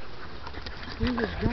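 A dog yelps briefly.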